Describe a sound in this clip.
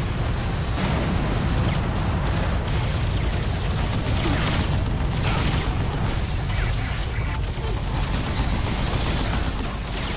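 Explosions thud and crackle.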